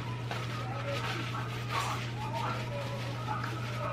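Paper napkins rustle and crinkle.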